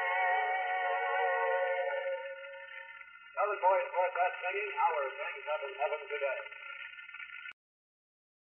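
A piano plays a tune.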